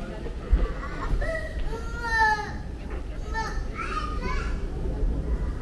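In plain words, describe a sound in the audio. A young woman talks briefly nearby as she passes.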